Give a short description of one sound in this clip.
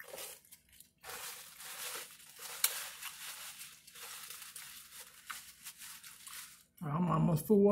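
Paper napkin rustles and crinkles.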